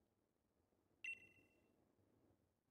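A bright chime rings out once.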